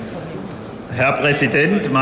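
A man speaks calmly into a microphone, amplified through loudspeakers.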